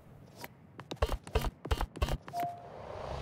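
Interface clicks tick in quick succession.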